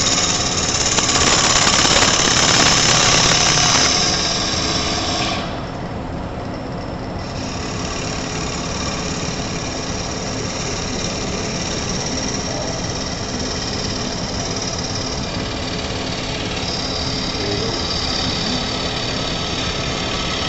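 A chisel scrapes and shaves against spinning wood.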